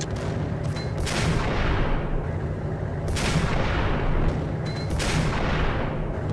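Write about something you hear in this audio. Gunshots boom with a deep rumble.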